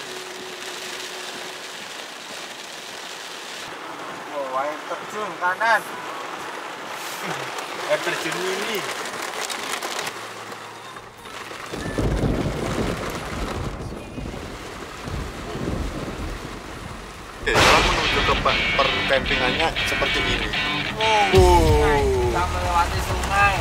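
Heavy rain patters on a car's windows and roof.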